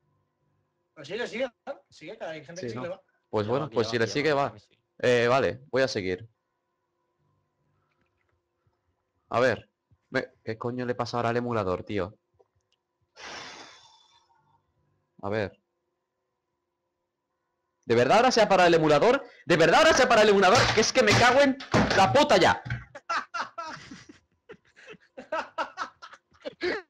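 A young man talks with animation close to a microphone, in bursts with pauses.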